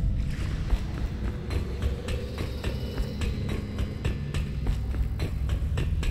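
Footsteps clang on a metal grate.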